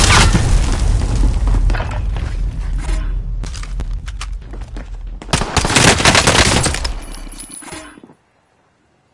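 Rapid gunfire crackles and booms.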